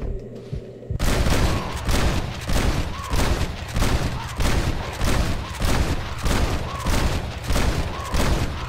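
Gunshots fire in quick, repeated bursts.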